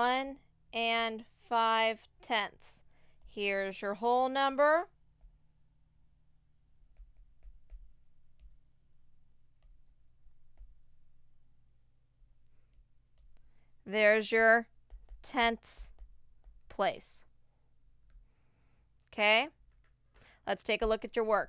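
A woman speaks calmly through a microphone, explaining with pauses.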